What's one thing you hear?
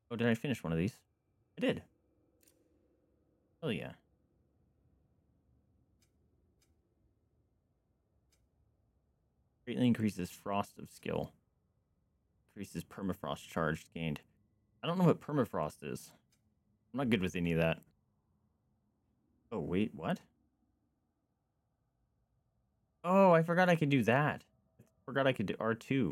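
A young man talks casually and closely into a microphone, in bursts with pauses.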